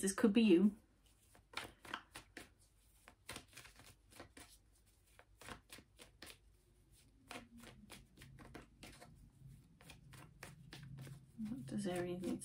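A woman speaks calmly close to a microphone.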